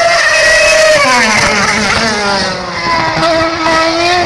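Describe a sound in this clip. A racing car engine drops in pitch as the car slows into a corner.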